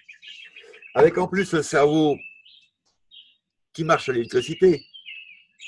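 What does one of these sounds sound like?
A man speaks calmly into a microphone.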